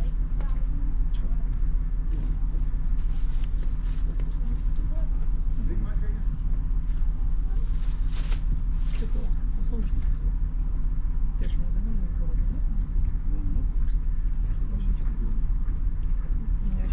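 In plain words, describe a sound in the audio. A ship's engine rumbles low and steady.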